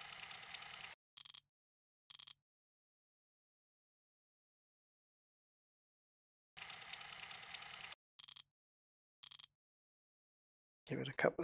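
A ratchet wrench clicks as it tightens a bolt.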